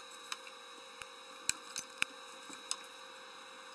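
Pliers click against metal.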